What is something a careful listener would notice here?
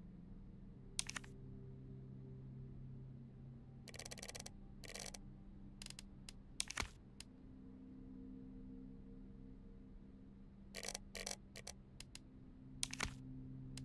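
Short electronic menu ticks and blips sound now and then.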